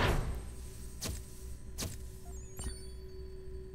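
Short electronic clicks sound as a game's progress meter fills.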